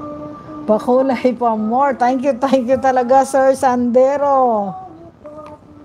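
A middle-aged woman sings loudly and with feeling, close to a microphone.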